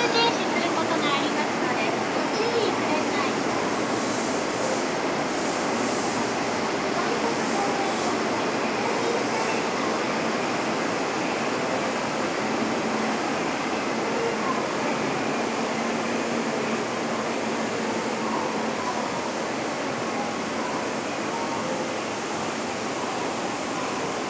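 An escalator hums and rumbles steadily in an echoing space.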